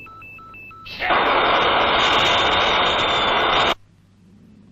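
A loud rushing whoosh sweeps past and cuts off suddenly.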